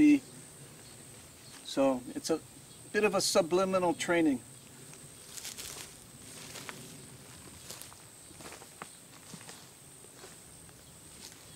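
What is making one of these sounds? A cow tears and munches grass.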